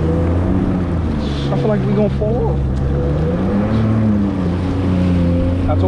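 Water splashes and hisses against the hull.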